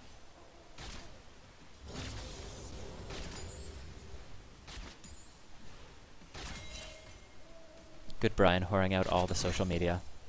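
Spells crackle and whoosh as game characters fight.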